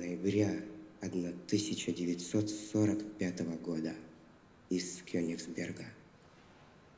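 A young man recites through a microphone in a large echoing hall.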